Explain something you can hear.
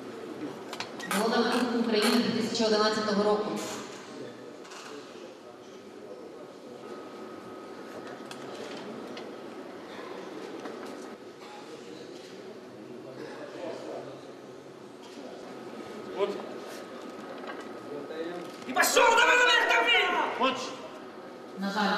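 Several men shout encouragement loudly in an echoing hall.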